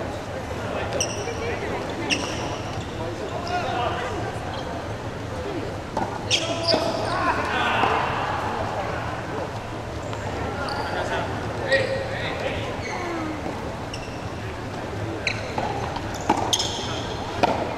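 Paddles strike a ball with sharp pops.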